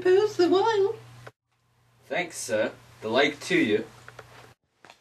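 A young man speaks loudly nearby.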